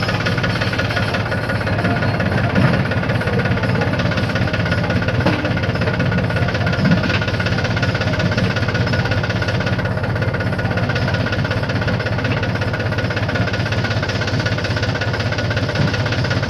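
A diesel backhoe loader's engine runs as it drives along a dirt track.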